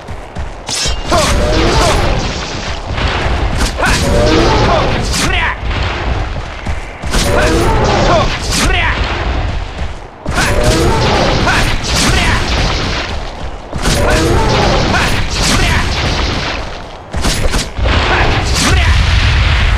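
A large beast roars and growls loudly.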